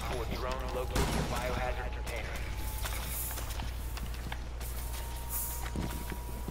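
Glass shatters and debris clatters.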